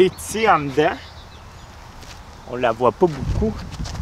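A man speaks animatedly close by.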